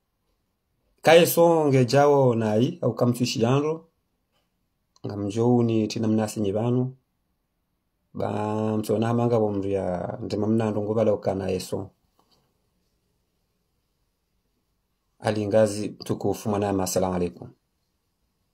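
A man chants melodically in short phrases, close to the microphone, with silent pauses between.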